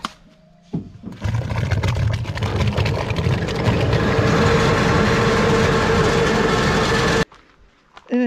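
Thick grape pulp pours with a wet, splattering gush into a tub.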